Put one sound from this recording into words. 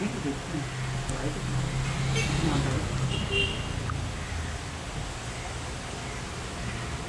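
A jacket rustles as it is pulled on.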